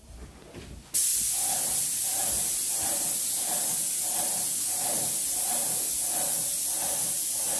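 A paint sprayer hisses loudly and steadily.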